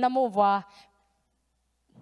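A young woman sings a sustained note through a microphone.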